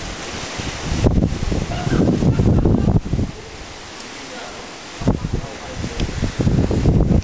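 Wind rumbles loudly across the microphone.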